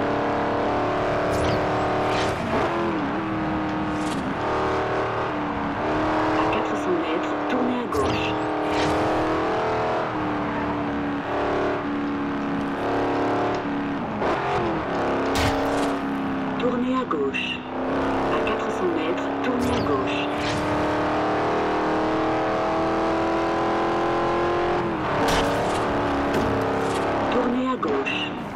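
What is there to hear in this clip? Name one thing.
A car engine roars steadily and shifts gears as it speeds along.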